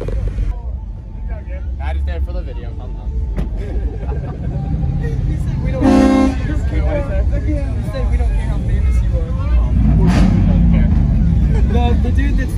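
A crowd of young men and women chatter nearby outdoors.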